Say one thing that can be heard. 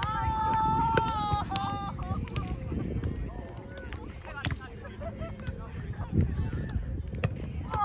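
A volleyball is struck with thuds.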